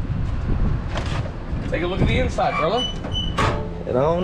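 A vehicle door clicks open.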